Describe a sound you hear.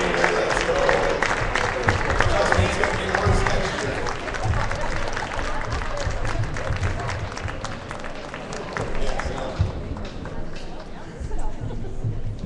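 A group of people shuffle and walk across a wooden floor.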